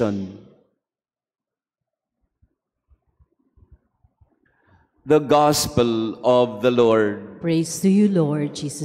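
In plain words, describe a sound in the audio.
A man reads out calmly into a microphone.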